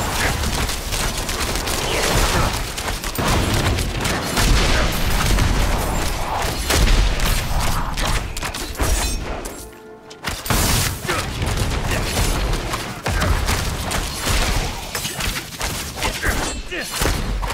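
Game combat sound effects clash and crash rapidly.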